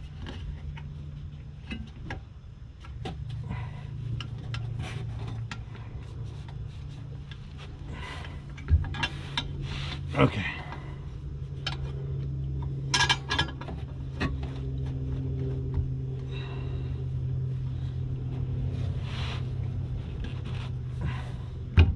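Metal parts clink and scrape close by.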